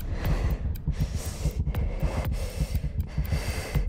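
Footsteps run on stone steps.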